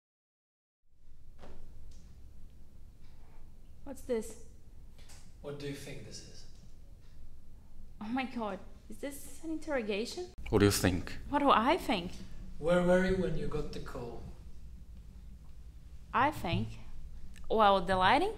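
A young woman speaks calmly and with feeling, close by.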